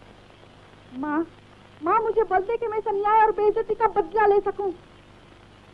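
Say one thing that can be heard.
A woman speaks with strong emotion, close by.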